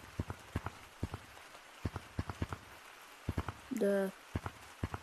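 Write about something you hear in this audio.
A hand taps buttons, making soft clicks in quick pairs.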